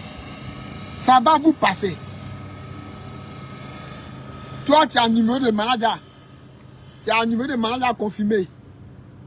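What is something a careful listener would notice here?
A man speaks with animation close to a phone microphone, in short bursts.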